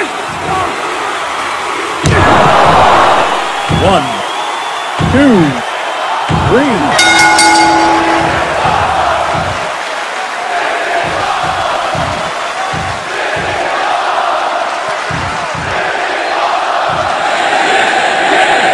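A crowd roars and cheers in a large arena.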